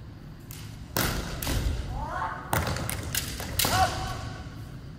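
Bamboo swords clash with sharp cracks in a large echoing hall.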